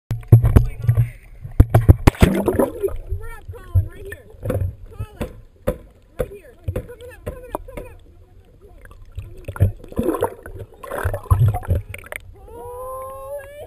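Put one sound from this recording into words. A humpback whale sings underwater with gliding moans and squeals.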